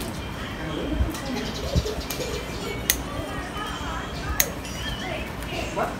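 Pruning shears snip through small branches.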